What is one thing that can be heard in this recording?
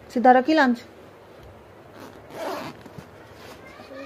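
Fabric of a backpack rustles as a hand handles it.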